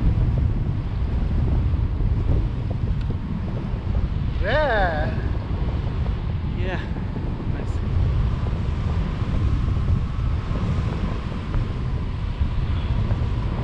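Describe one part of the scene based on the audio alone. Wind roars loudly across a microphone outdoors.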